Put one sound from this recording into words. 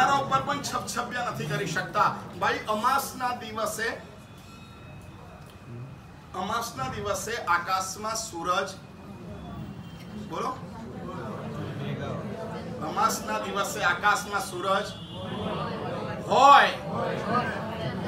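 An elderly man speaks with animation close to a microphone, in bursts with pauses.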